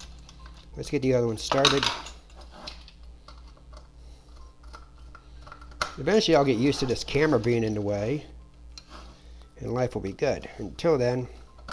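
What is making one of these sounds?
A screwdriver clicks and scrapes against a small metal case.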